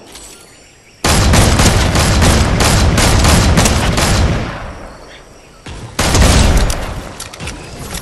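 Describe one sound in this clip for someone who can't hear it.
A rifle shot booms and rolls away.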